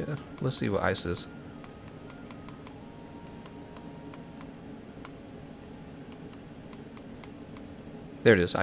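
Soft menu clicks tick as a cursor steps through a list.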